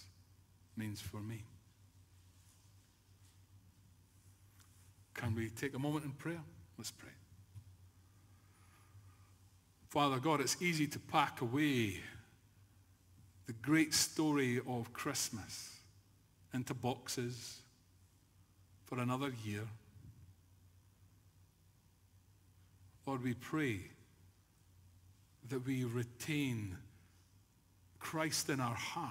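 An elderly man speaks slowly and forcefully into a microphone, with long pauses, in a large echoing room.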